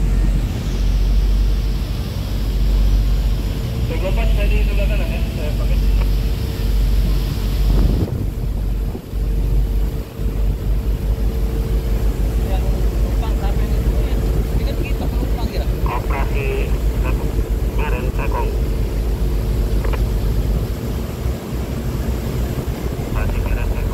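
Water from a fire hose gushes and splashes.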